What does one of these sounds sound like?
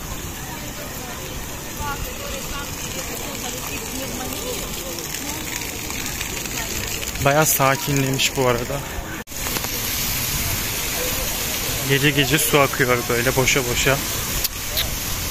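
Fountain jets splash and patter onto wet stone nearby.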